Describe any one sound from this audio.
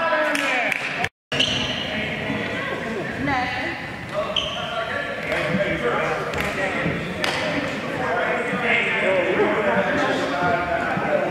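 A crowd of spectators chatters and calls out in a large echoing gym.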